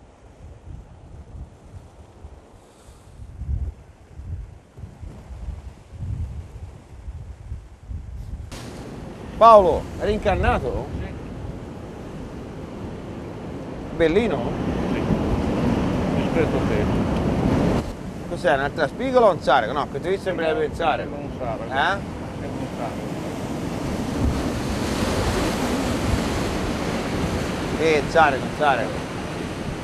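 Waves wash against rocks close by.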